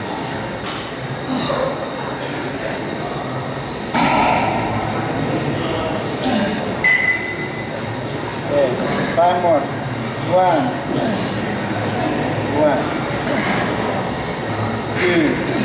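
A man grunts and strains with effort.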